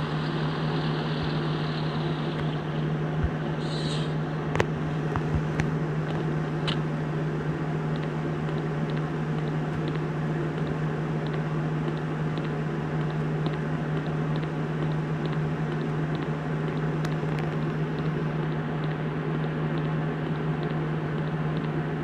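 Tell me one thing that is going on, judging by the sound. A diesel semi-truck engine drones at a steady cruise.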